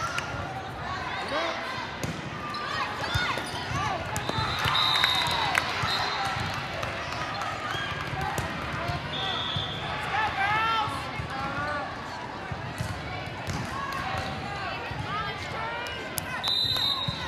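Many sneakers squeak sharply on a hard court in a large echoing hall.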